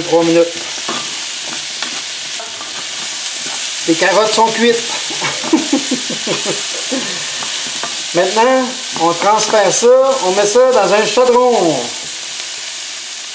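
Vegetables sizzle in a hot frying pan.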